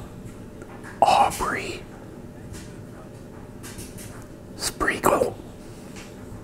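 A middle-aged man speaks softly close to a microphone.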